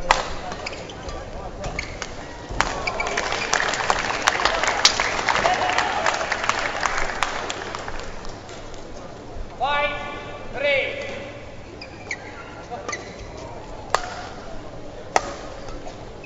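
Badminton rackets smack a shuttlecock back and forth.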